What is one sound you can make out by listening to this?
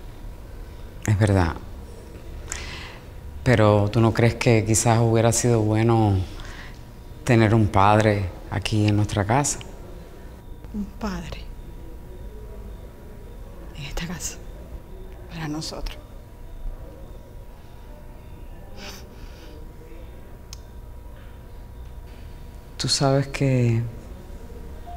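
A woman speaks calmly up close.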